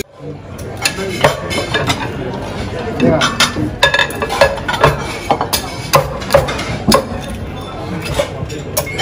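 Spoons and plates clink as food is served.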